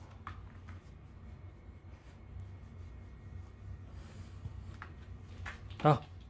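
A hand rubs a dog's fur.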